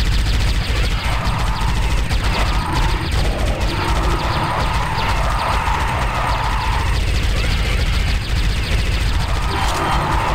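Alien creatures screech and shriek.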